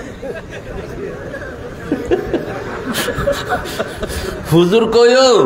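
A man preaches with passion through a microphone and loudspeaker.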